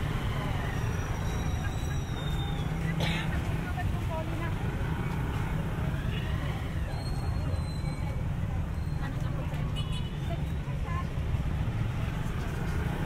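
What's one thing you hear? Traffic rumbles steadily along a busy street nearby.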